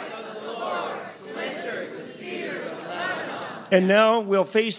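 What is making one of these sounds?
A crowd sings together in a reverberant room.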